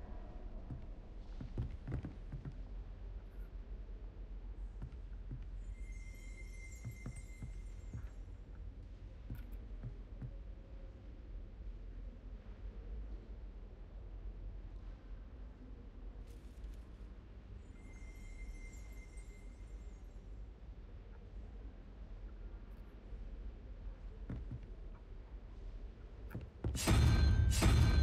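Footsteps tap on a stone floor.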